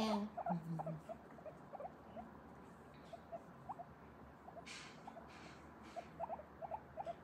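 A guinea pig makes soft, short squeaks.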